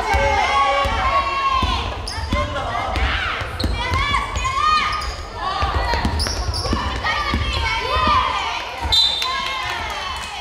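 A basketball bounces with dull thuds on the floor.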